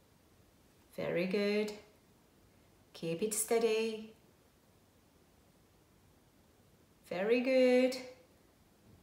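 A woman sings short, held notes close by, with pauses of silence between them.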